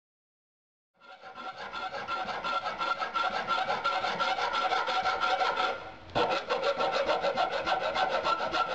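A metal file rasps back and forth with quick, even strokes.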